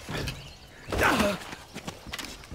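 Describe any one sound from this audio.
A heavy thud of a landing after a jump.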